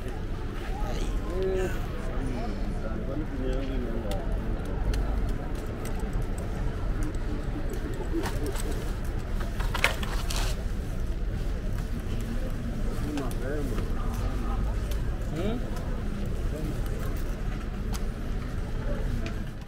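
Boots scuff and thud as a young man pulls them on.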